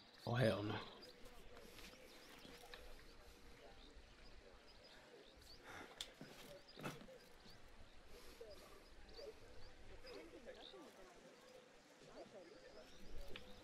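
A young man talks quietly and casually close to a microphone.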